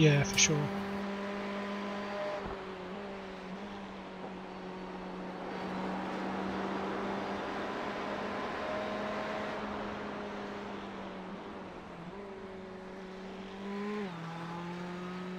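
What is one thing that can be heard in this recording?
A race car engine drones steadily, shifting pitch as the car speeds up and slows down.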